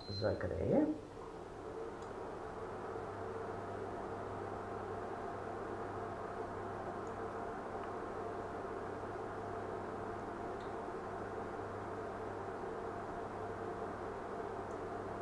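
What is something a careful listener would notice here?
A handheld electric appliance hums and blows steadily.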